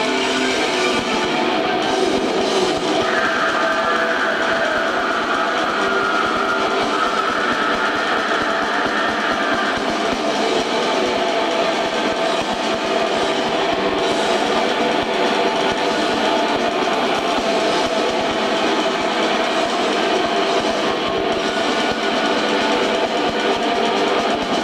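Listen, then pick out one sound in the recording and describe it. A band plays loud, distorted heavy metal through amplifiers.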